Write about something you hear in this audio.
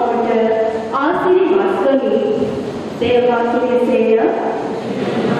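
A young woman sings with long held notes through a microphone in an echoing hall.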